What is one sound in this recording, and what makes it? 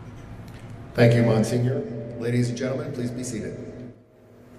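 A man speaks into a microphone through loudspeakers in a large echoing hall.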